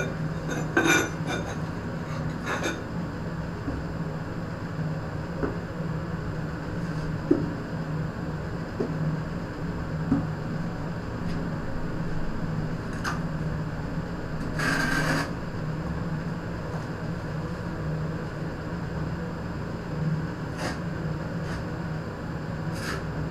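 A trowel scrapes and taps against wet mortar on a floor.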